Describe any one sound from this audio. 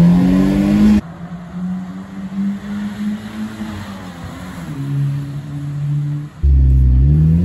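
A car drives past outside, its engine rising and falling.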